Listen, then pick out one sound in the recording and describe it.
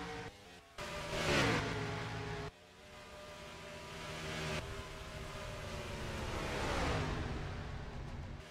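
A racing car roars past with a falling engine pitch.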